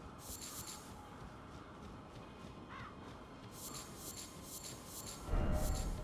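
Footsteps crunch quickly through dry grass.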